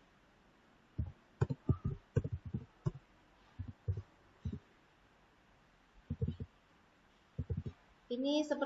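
Keyboard keys click in quick taps.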